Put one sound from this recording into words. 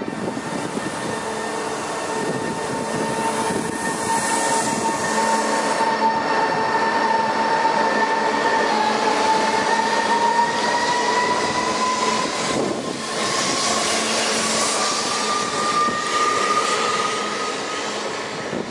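An electric train motor whines, rising in pitch as it accelerates.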